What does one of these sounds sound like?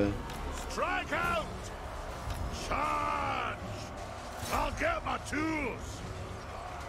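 A young man talks with animation into a close microphone.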